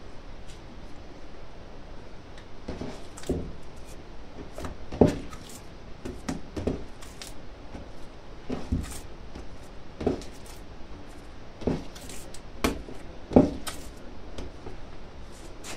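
Dough slaps and thumps against a countertop as hands knead it.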